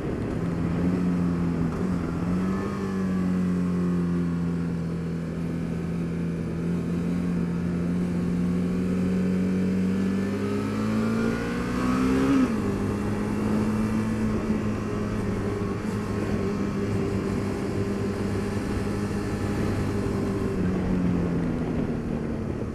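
A motorcycle engine hums steadily and rises and falls in pitch as the rider shifts and accelerates.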